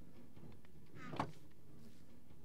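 A wooden chest closes with a creak and a thud.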